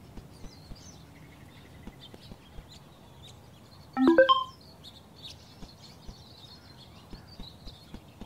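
Footsteps tap lightly and steadily.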